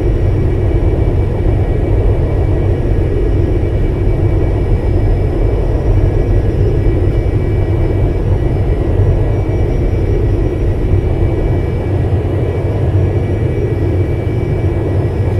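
Aircraft engines drone steadily, heard from inside the plane.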